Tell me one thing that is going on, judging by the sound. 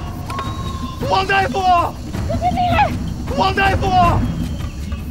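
A young man shouts loudly outdoors.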